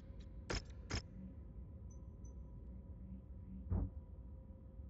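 Sharp interface clicks sound a few times.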